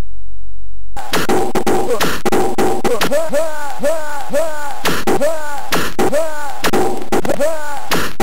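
Electronic zaps and falling beeps sound rapidly, over and over.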